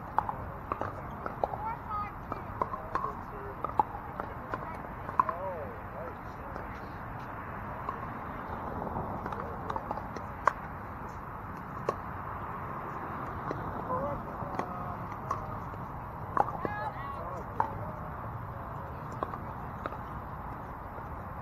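Paddles strike a plastic ball with sharp pops, again and again.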